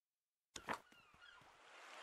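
Water splashes in fountains.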